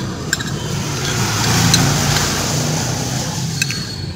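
A spoon scrapes against a plate.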